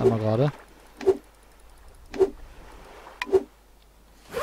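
A stone hammer knocks against rock several times.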